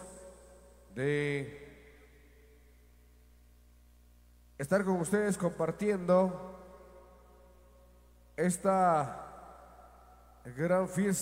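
A man speaks loudly in short bursts, with a ringing echo.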